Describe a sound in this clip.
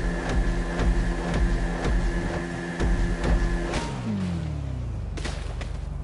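A motorcycle engine roars at speed, then winds down.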